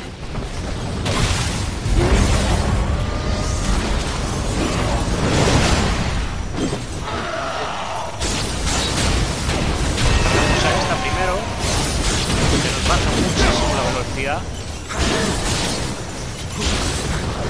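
Magic blasts crackle and whoosh in bursts.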